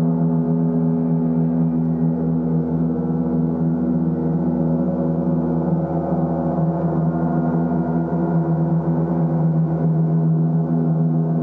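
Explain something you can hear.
Large gongs hum and shimmer with a deep, steady, swelling drone.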